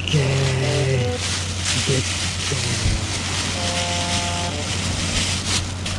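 A plastic bag rustles and crinkles as it is handled.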